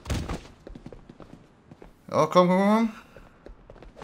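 Footsteps run on stone.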